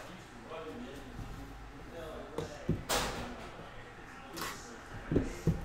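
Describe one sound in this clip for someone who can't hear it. A cardboard box taps and knocks as hands handle it.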